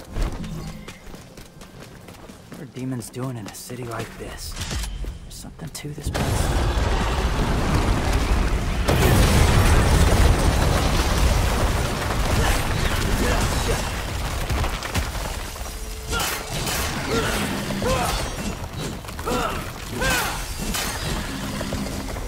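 A blade slashes through the air with sharp swishes.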